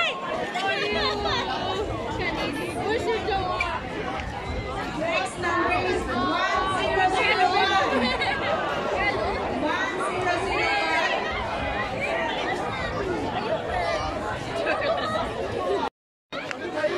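A large outdoor crowd chatters and shouts all around.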